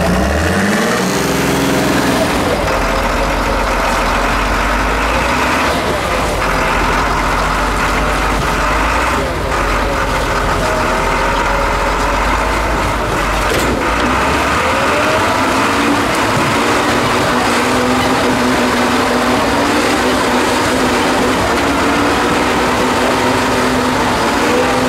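A heavy truck engine roars and strains while climbing over rocks.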